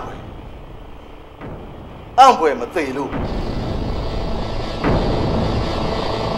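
A man groans in pain close by.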